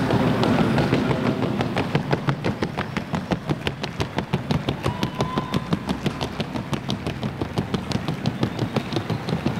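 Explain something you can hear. Horse hooves patter in a fast, even rhythm on a hard floor.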